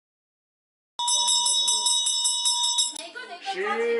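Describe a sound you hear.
A small hand bell rings in a quick, even rhythm.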